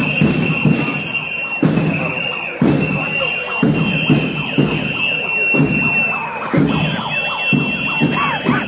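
Many footsteps shuffle on a paved street.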